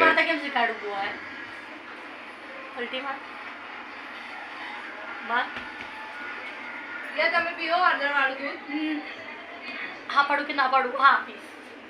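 A woman talks to a baby close by in a warm, playful voice.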